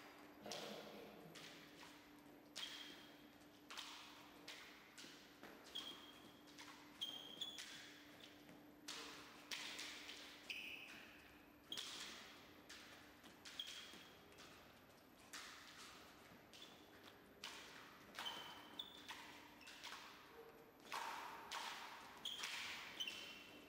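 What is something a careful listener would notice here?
Fencers' shoes squeak and thud on the floor in an echoing hall as they step back and forth.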